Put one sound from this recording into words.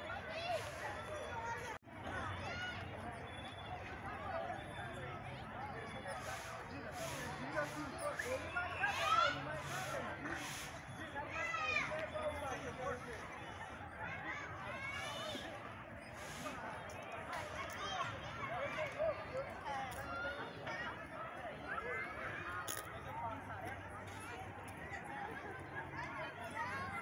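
Many children shout and shriek as they play, heard from a distance.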